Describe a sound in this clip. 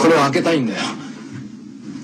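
A young woman speaks in a frightened voice, close by.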